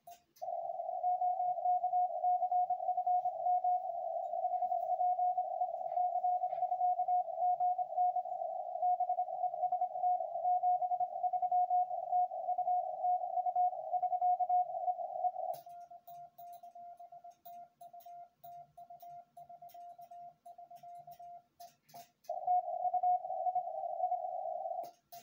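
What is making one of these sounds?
A telegraph key clicks under a hand.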